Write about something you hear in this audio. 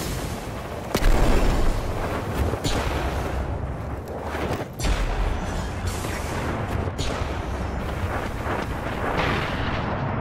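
A rifle fires in short bursts with loud sharp bangs.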